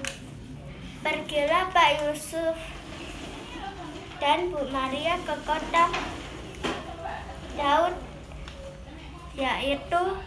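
A young girl reads out slowly and clearly, close by, with short pauses.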